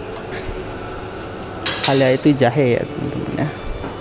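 A spoon stirs and scrapes inside a pot.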